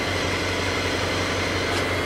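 A gas torch hisses steadily.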